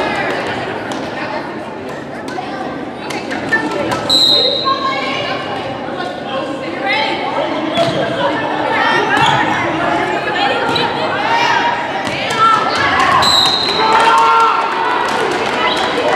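A volleyball is struck with sharp smacks in a large echoing gym.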